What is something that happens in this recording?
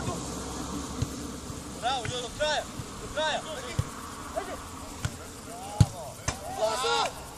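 A football is kicked with dull thuds.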